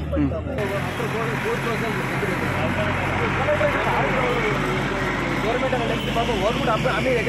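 Several men argue loudly outdoors, their voices overlapping.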